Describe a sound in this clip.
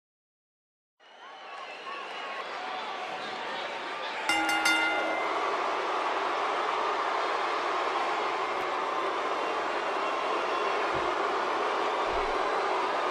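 A large crowd cheers loudly in a big echoing arena.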